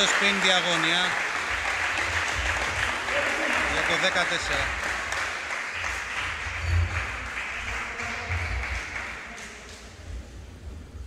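A crowd cheers and applauds loudly in a large echoing hall, then fades.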